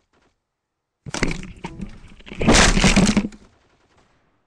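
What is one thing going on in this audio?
A loud cartoon game blast bursts and rumbles.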